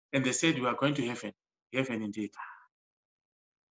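A middle-aged man speaks calmly into a microphone, heard as if over an online call.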